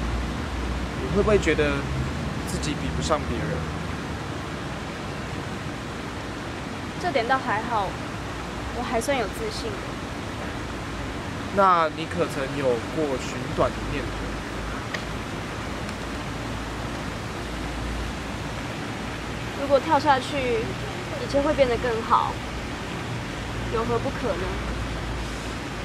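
A young woman speaks quietly and thoughtfully nearby.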